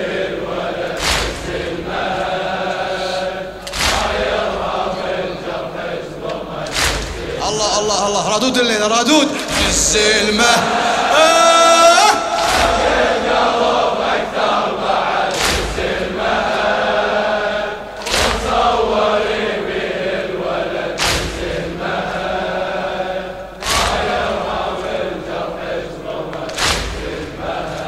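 A crowd strikes their chests together in a slow, steady rhythm.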